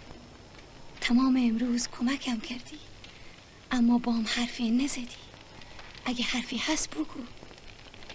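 A woman speaks in a grieving, tearful voice close by.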